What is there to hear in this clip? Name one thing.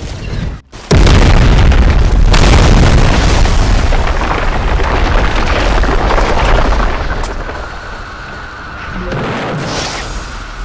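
Loud blasts and punches rumble and roar from a fight in a game.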